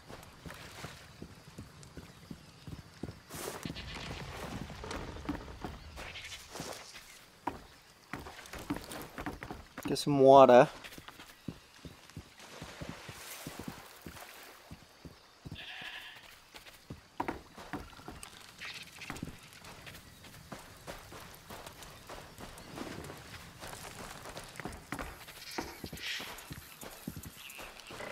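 Footsteps crunch over dirt and dry grass.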